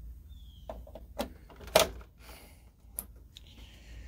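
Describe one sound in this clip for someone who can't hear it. A hand knocks and bumps against a plastic power box.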